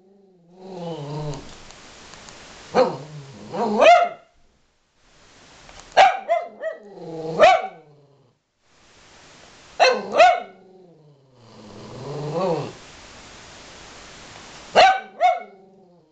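A small dog whines, howls and yelps up close in bursts.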